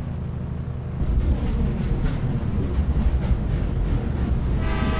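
A train rolls along the tracks with a loud clattering rumble.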